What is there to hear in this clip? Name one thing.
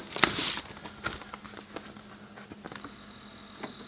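A vinyl record sleeve rustles as a hand slides a record out.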